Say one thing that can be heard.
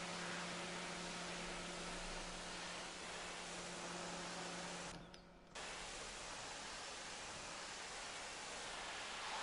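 A pressure washer sprays water with a loud steady hiss, briefly cutting out.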